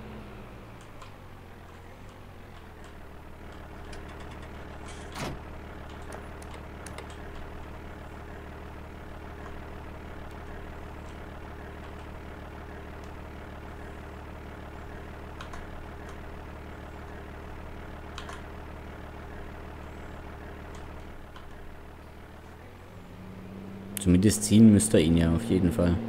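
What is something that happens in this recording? A diesel tractor engine idles with a steady low hum.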